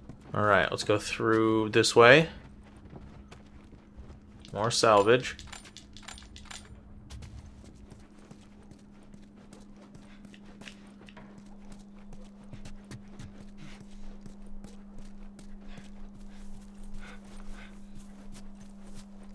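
Footsteps walk steadily across a wooden floor and then outside on grass.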